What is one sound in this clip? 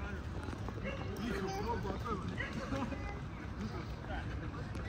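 Young men and women chat casually a short way off outdoors.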